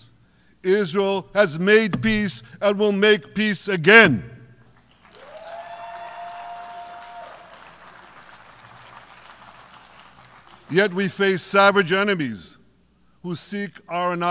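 An older man speaks firmly and deliberately through a microphone in a large echoing hall.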